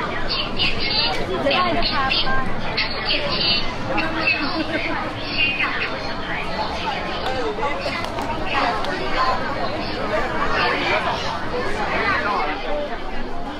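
A crowd of people chatters outdoors nearby.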